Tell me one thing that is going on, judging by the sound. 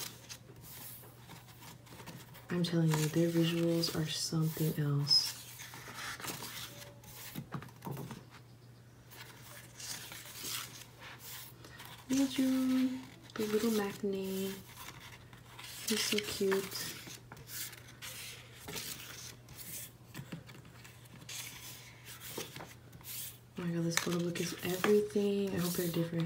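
Stiff pages of a book turn and rustle.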